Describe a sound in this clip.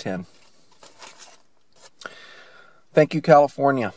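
A paper wrapper crinkles softly.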